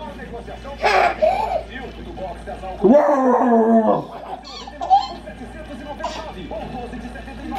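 A baby babbles and squeals happily up close.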